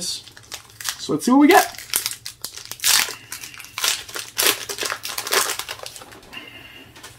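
A foil card wrapper tears open.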